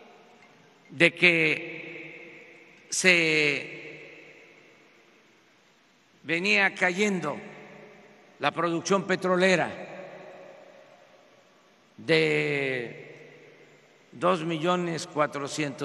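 An elderly man speaks slowly and firmly into a microphone, in short phrases with long pauses, echoing in a large hall.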